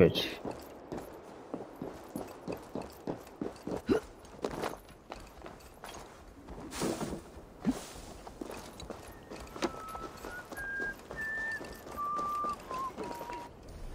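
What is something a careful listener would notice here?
Footsteps patter quickly over a roof and then over ground.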